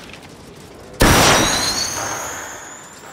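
A flare gun fires with a loud, sudden bang and a hissing whoosh.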